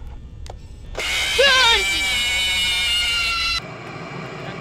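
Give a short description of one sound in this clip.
A loud, shrill electronic screech blares and falls in pitch.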